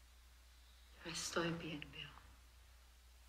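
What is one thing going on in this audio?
A woman speaks quietly and with emotion close by.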